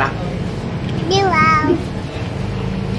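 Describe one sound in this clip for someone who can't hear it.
A small child speaks in a high voice.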